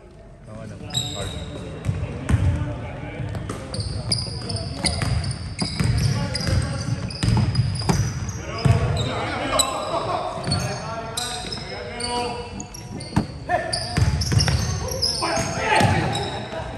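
Sneakers squeak on a hardwood court as players run.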